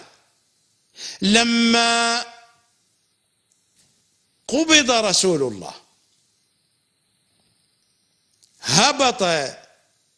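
A middle-aged man chants slowly and melodiously into a microphone, in drawn-out phrases with pauses between.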